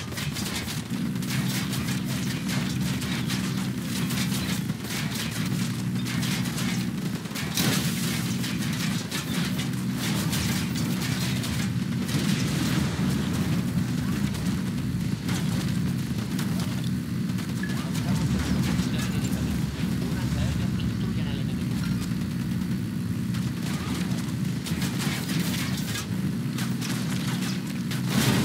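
A heavy armoured vehicle's engine rumbles steadily.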